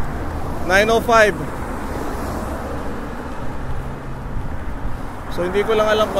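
A car drives past on the road.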